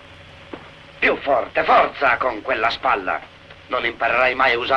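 A man speaks sternly nearby.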